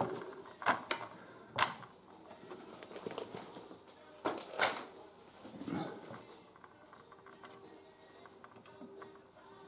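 Small plastic parts click and knock as they are handled.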